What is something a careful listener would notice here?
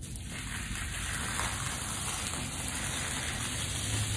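A plastic sheet crinkles.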